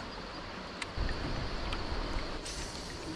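A kayak bumps and knocks as a man shifts his weight.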